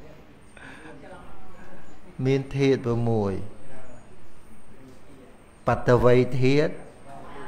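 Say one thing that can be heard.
An elderly man speaks calmly and with animation into a microphone.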